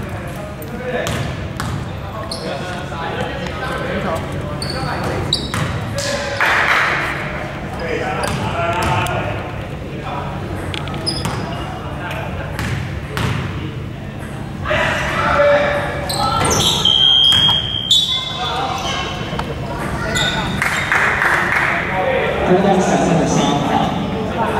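Sneakers squeak on a hardwood court in a large echoing gym.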